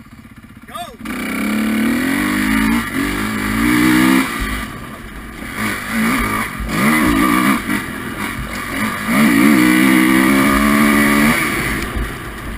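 A dirt bike engine roars up close, revving up and down as it rides.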